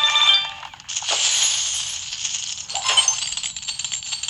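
A treasure chest bursts open with a whoosh.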